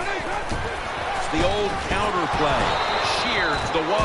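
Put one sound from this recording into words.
Football players' pads thud together in a tackle.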